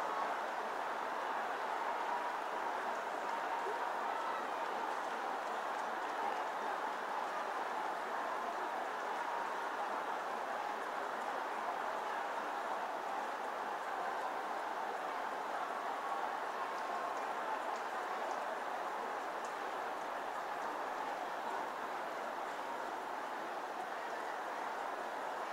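A large crowd prays aloud together, a dense roar of many voices in a big echoing hall.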